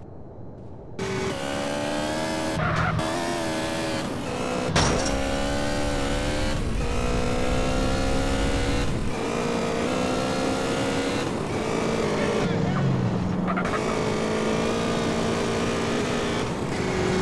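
A motorcycle engine revs and roars as the bike speeds along.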